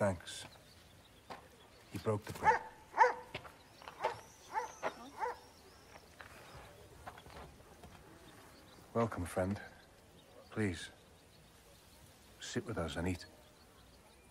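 A man speaks calmly and earnestly close by.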